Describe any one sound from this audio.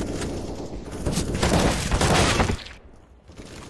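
A grenade bursts with a loud bang.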